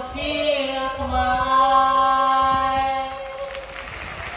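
A group of young voices sings long held notes through loudspeakers in a large hall.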